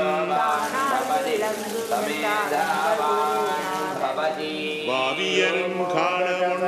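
A man chants.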